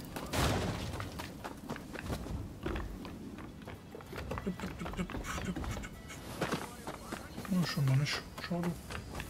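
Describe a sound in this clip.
Footsteps patter quickly over wooden boards and grass.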